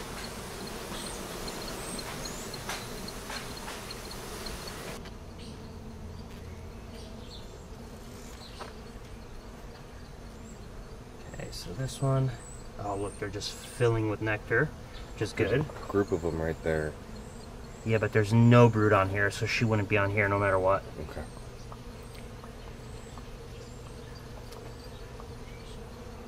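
Bees buzz in a low, steady hum.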